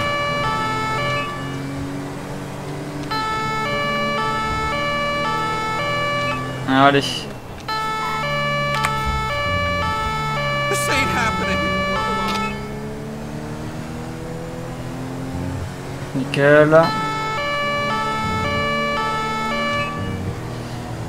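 A police two-tone siren wails.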